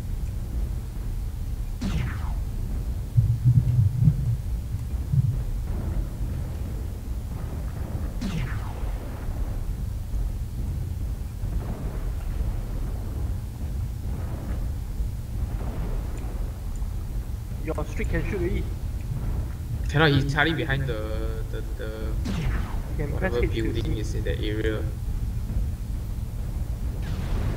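A heavy machine's engine rumbles low and steady.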